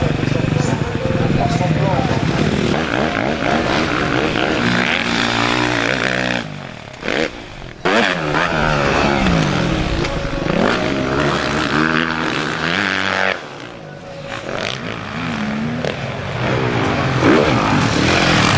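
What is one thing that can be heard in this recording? Dirt bike engines rev loudly, rising and falling in pitch.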